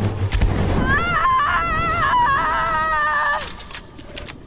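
Flames roar in a fierce blast.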